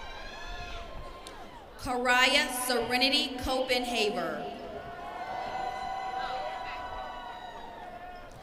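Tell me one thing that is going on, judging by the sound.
A woman speaks cheerfully, heard through an outdoor loudspeaker.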